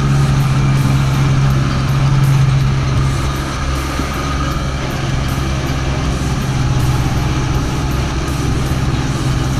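A jet ski engine drones steadily at speed.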